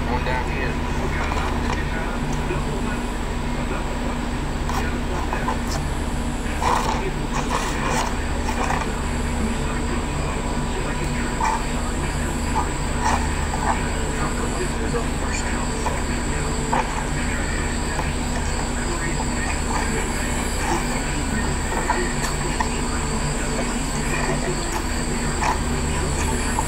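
A cardboard box rustles and taps as it is handled.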